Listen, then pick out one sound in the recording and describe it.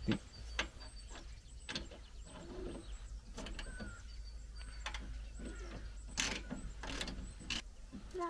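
Small metal parts clink under a vehicle's hood.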